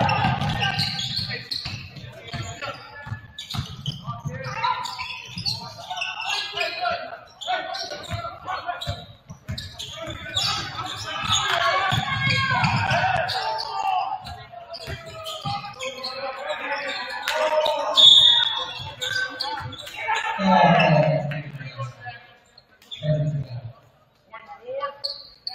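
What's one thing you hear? Spectators murmur and call out.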